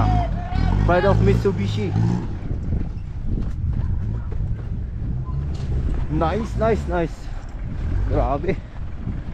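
An off-road vehicle's engine rumbles and labours as it climbs a dirt slope.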